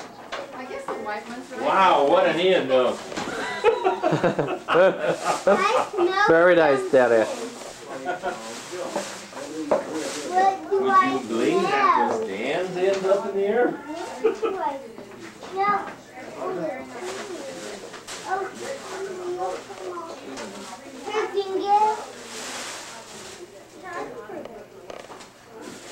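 Gift wrapping paper rustles and crinkles.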